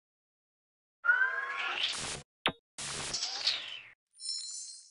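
A synthetic whooshing sound effect swirls up and fades.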